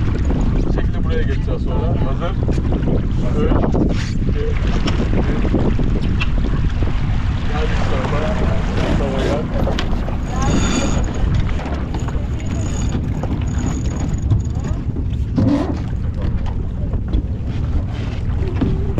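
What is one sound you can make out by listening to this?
Water rushes past the hull.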